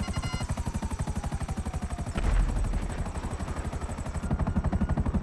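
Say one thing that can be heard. A helicopter's rotor beats steadily overhead.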